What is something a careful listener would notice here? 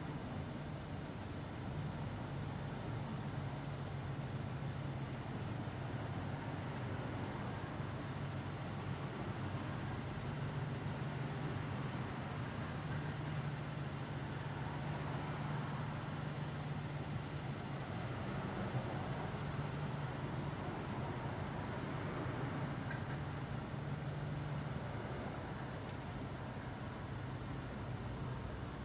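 A car's engine hums steadily from inside the cabin as it drives along a road.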